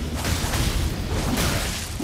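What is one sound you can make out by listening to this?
Flames crackle and roar nearby.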